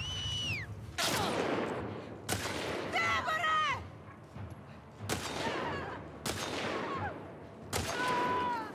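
Gunshots ring out one at a time.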